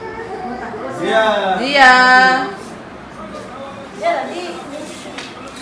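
A young child calls out loudly and drawn out nearby.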